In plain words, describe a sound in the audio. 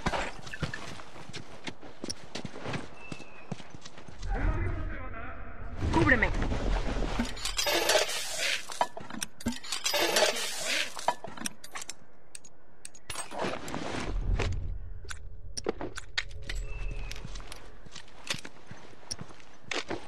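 Footsteps patter quickly over grass and pavement.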